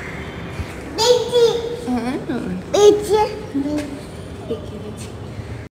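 A small child babbles and squeals up close.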